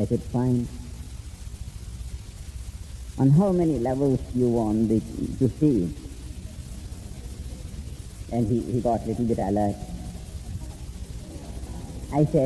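A man speaks calmly in short phrases with long pauses, close to the microphone.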